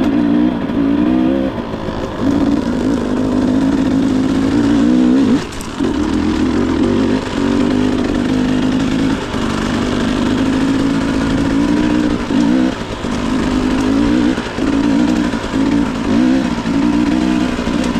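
Tyres crunch over a rocky dirt trail.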